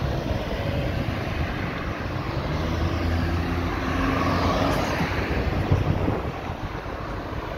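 Cars drive past on asphalt.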